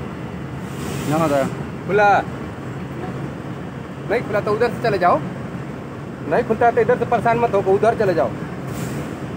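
A boy talks close by.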